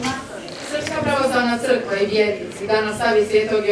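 A young girl speaks clearly into a microphone, heard through a loudspeaker.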